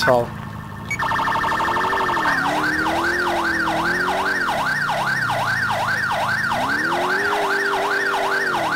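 A police siren wails rapidly up and down, close by.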